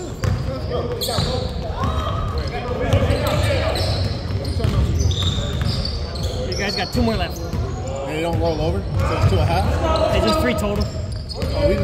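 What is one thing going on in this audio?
Basketball shoes squeak sharply on a hard floor.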